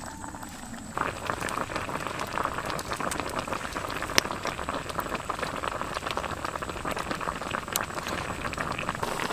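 A wood fire crackles and pops up close.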